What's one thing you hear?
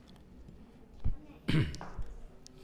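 A microphone thumps as it is picked up.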